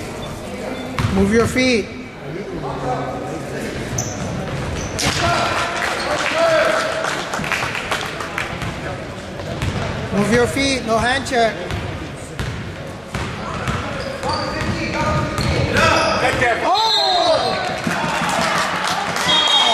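A basketball bounces on a hard court, echoing in a large hall.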